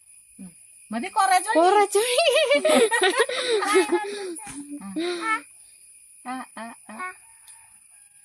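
A young girl talks with excitement up close.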